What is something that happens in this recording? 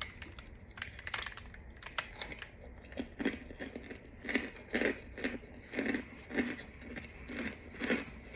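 Crumbled pieces patter onto paper.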